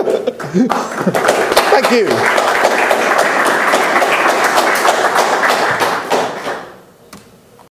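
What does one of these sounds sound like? An audience laughs in a large room.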